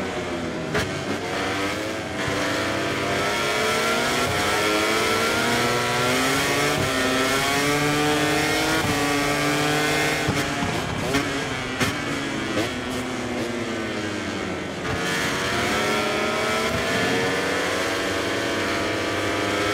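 A motorcycle engine whines loudly, rising as it speeds up and dropping as it slows for bends.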